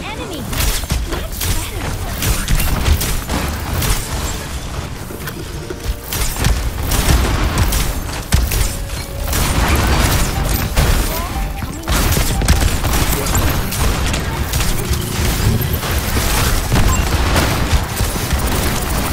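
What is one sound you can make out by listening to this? Rapid game gunfire crackles in short bursts.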